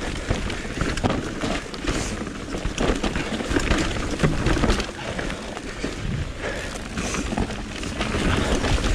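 A bicycle rattles and clanks over roots and rocks.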